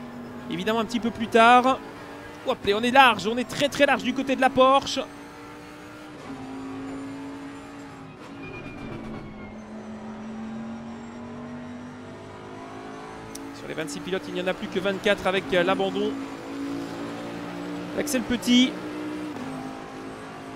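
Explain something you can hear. A racing car engine drones steadily, its pitch shifting up and down with speed.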